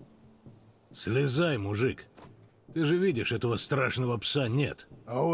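A man speaks with a deep, steady voice.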